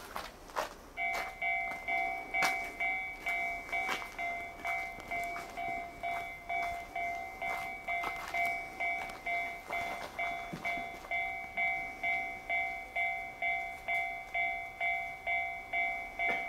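A level crossing bell dings rapidly and steadily.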